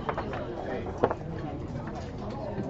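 A game piece clicks down on a board.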